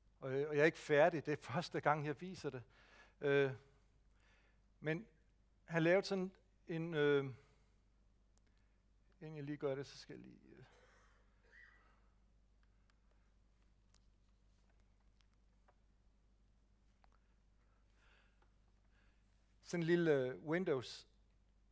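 A man speaks calmly into a microphone, in bursts with long pauses.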